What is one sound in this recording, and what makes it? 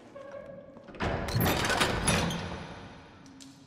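A heavy metal door lock clanks and slides open.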